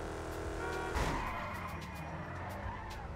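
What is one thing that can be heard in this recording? Tyres squeal on asphalt as a hot rod slides sideways.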